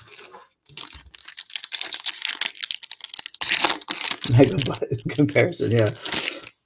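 A foil wrapper crinkles as a pack is pulled open.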